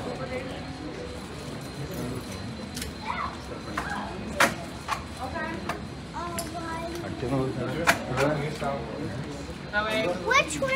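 Men and women chatter nearby in a crowd.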